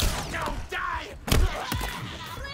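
A melee blow strikes with a heavy thud.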